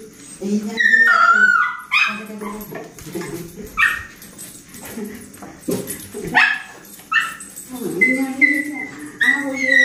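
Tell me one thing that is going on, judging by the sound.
A dog whines and yelps excitedly.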